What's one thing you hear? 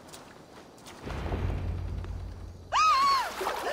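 A body drops heavily into shallow water.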